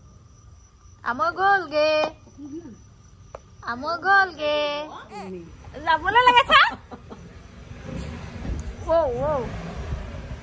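A woman speaks close by in a high, animated voice.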